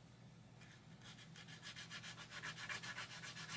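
A sanding stick rasps quickly back and forth on hard plastic, close by.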